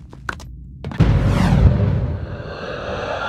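A heavy thud lands, followed by a rumbling whoosh.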